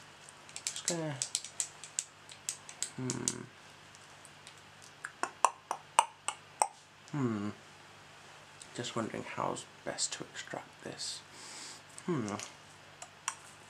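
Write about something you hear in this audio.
A young man makes wet clicking mouth sounds close to a microphone.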